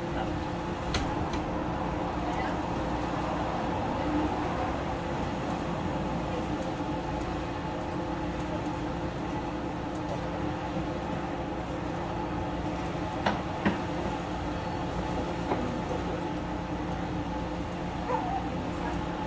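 Metal parts clink and click.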